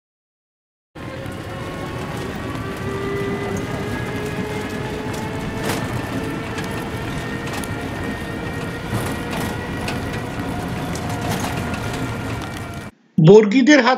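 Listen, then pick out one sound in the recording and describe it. A small motor rickshaw engine drones steadily as it drives along.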